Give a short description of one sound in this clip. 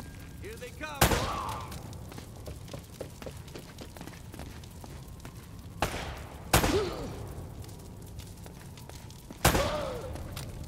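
Pistol shots ring out loudly with a booming echo.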